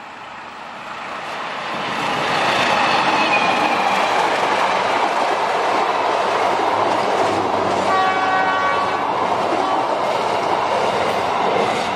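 A train rumbles and clatters loudly past on the tracks.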